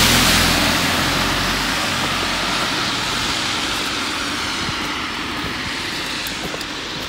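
A car drives off on a wet road with a hiss of tyres that slowly fades.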